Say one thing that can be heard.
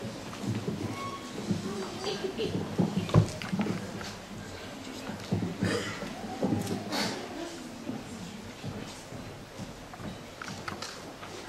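A violin plays a few notes.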